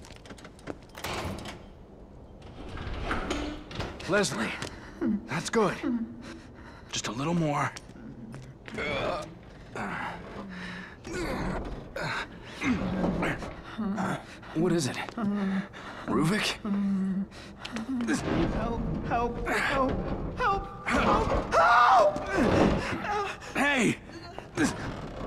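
A man speaks tensely close by.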